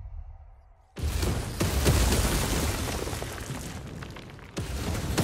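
Footsteps crunch on loose rocks.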